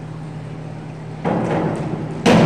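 A diving board thumps and rattles as a diver springs off it.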